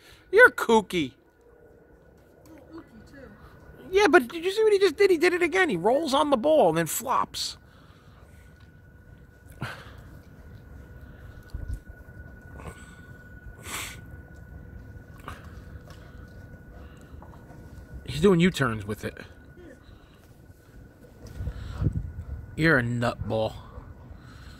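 A dog growls and whines playfully up close.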